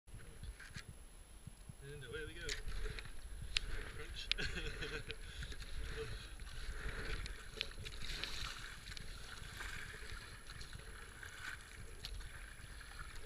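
Water laps and swishes against the side of a kayak.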